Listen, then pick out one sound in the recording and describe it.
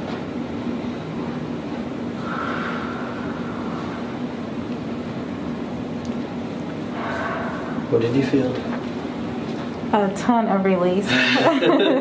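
A motor hums steadily.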